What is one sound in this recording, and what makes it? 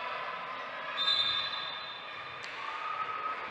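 A referee blows a sharp whistle in a large echoing hall.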